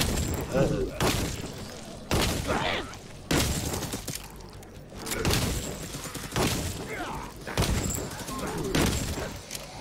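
Heavy blows land with sudden bursts of impact, again and again.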